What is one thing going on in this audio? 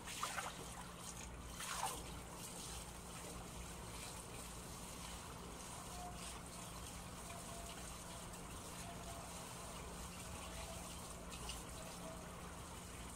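A man scrubs something by hand, with soft rubbing and splashing.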